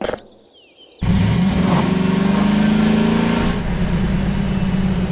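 A buggy's engine starts and idles with a loud, steady rumble.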